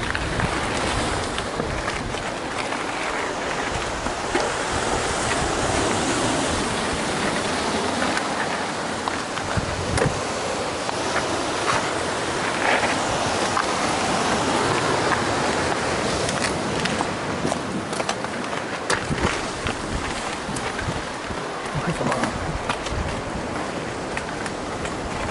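Wind buffets loudly and steadily.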